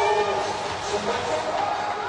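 A volleyball thuds off a player's forearms.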